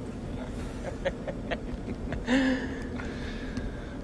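A woman laughs softly.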